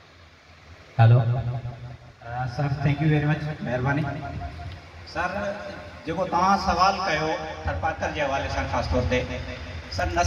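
A man speaks steadily through a microphone and loudspeakers.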